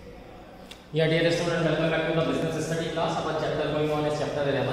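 A man speaks calmly and clearly close by, as if giving a lecture.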